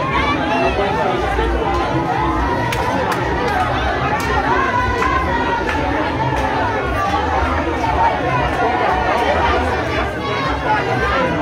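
A large crowd of men and women talk and shout over one another outdoors close by.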